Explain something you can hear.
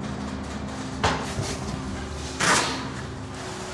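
A cardboard box rustles as it is opened and handed over.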